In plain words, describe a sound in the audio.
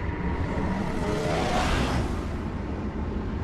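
An explosion bursts with a loud roaring blast.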